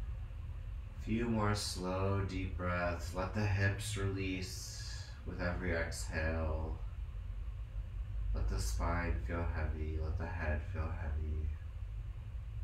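A man speaks calmly and softly nearby, pausing between phrases.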